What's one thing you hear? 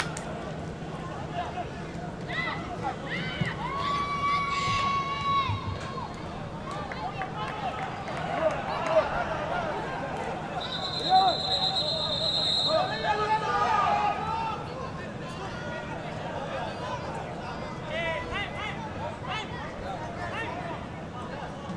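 A crowd chatters and shouts in an open stadium.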